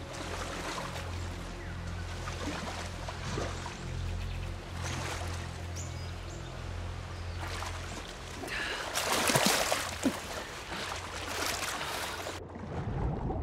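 Water splashes and churns as a person swims through it.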